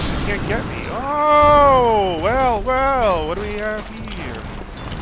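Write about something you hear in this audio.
A monster lets out a wavering, rising and falling wail.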